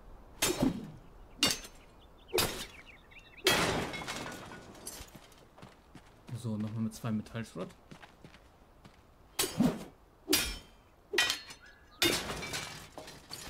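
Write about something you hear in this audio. A pickaxe strikes stone with sharp, repeated knocks.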